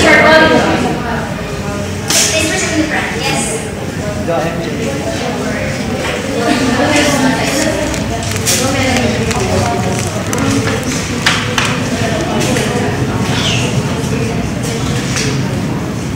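Several young women chatter close by in an echoing room.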